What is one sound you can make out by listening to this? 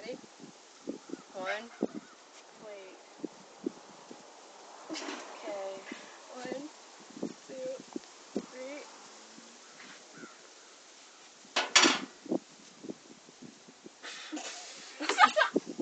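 A second young woman talks close by.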